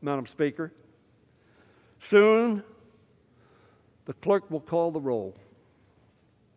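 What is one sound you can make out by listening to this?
An elderly man speaks slowly and formally into a microphone, with pauses between phrases.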